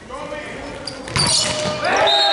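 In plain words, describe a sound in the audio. A volleyball is struck hard with a loud slap.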